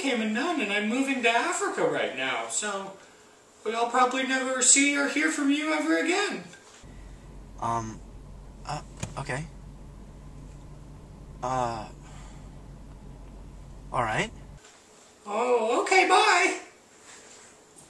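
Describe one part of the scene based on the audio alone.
A young man talks animatedly on a phone, close by.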